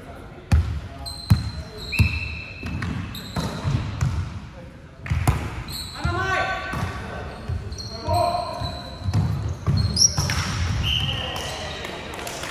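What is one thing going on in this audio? Shoes squeak on a wooden court.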